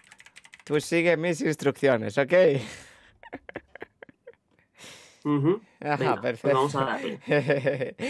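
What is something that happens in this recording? A young man laughs over an online call.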